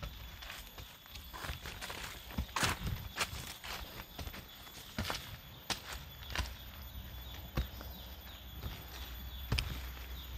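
Dry leaves rustle and crackle as a woman moves through undergrowth.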